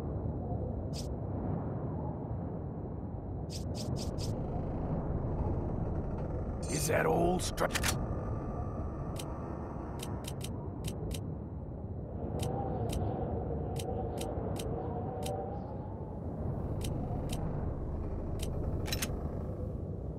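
Short electronic clicks tick as a game menu is scrolled.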